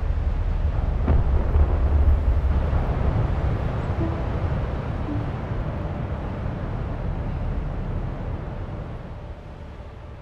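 Strong wind roars steadily.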